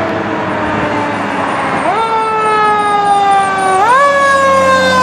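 A fire engine's siren wails.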